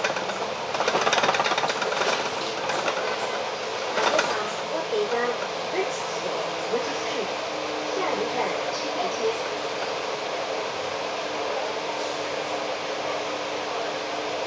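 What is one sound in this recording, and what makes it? City traffic rumbles steadily on a road outdoors.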